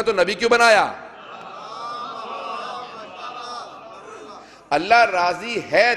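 A man preaches with emotion into a microphone, his voice rising and falling.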